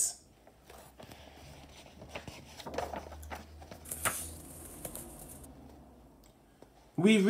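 Paper pages rustle and flip as a book's page is turned.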